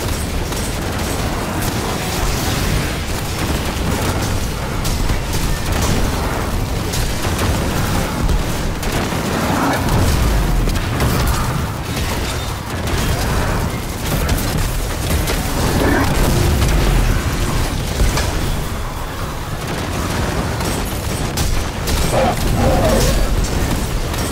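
Gunfire crackles rapidly and steadily.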